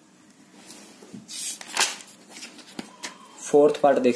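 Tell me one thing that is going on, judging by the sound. A page of paper is turned with a rustle.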